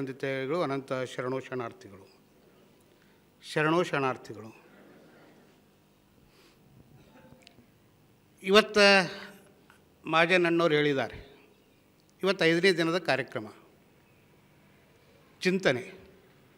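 A middle-aged man speaks slowly and deliberately into a microphone, in short phrases with pauses, heard through a loudspeaker.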